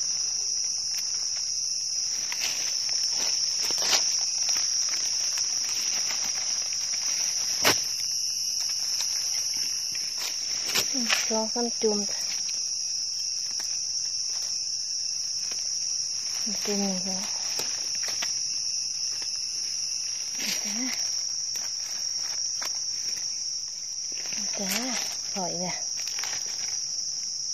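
A knife snicks through a soft mushroom stem.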